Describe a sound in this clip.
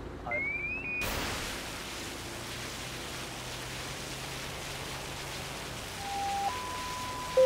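A fire hose sprays water with a steady hiss.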